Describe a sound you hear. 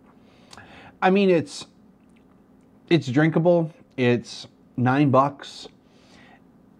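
A middle-aged man talks calmly and close up, in short phrases.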